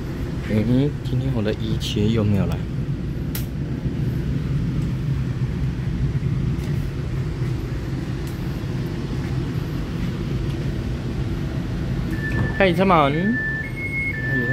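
A train rumbles steadily while riding along.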